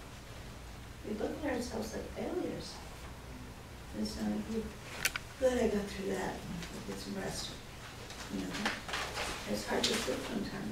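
An older woman speaks calmly and conversationally.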